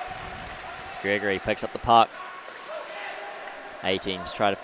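A young man shouts out across an echoing rink.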